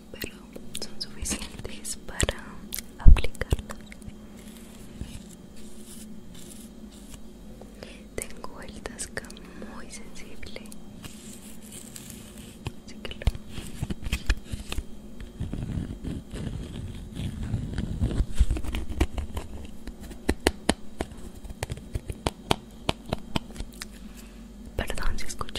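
Fingernails tap and scratch on a plastic case close to a microphone.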